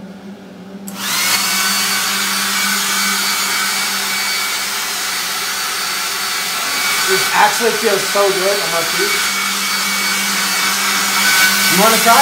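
A hair dryer blows with a loud, steady whoosh.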